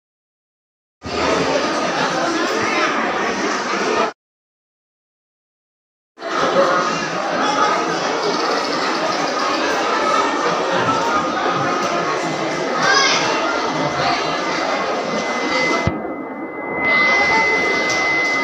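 A large crowd chatters and murmurs in a roomy, echoing space.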